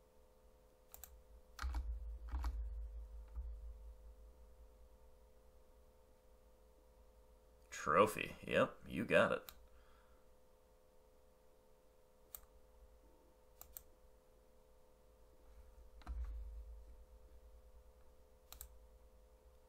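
A computer card game plays short clicking effects as cards are played.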